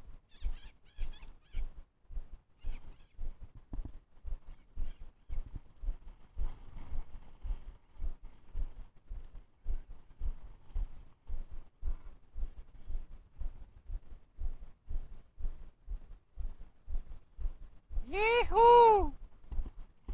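Wind blows across open grassland outdoors.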